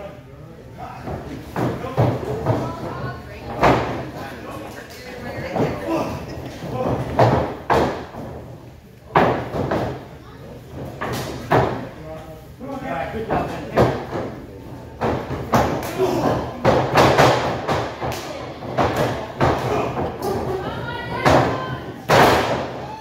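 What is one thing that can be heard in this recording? Footsteps thump on a wrestling ring's canvas.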